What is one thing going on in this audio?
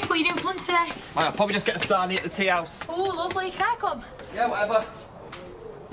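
A young woman speaks loudly in surprise.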